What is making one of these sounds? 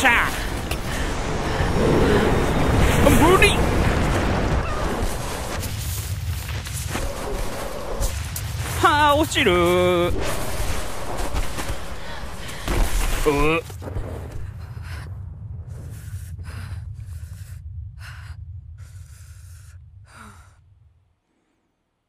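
Snow roars and rushes in a heavy avalanche, then slowly fades away.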